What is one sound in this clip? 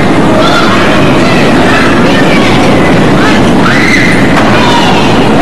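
Children shout and squeal excitedly nearby.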